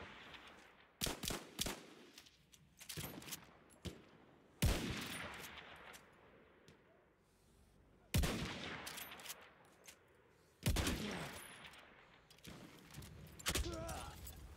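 Rifle shots crack loudly, each followed by a rolling echo.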